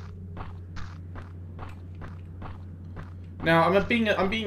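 Footsteps crunch steadily on a hard path.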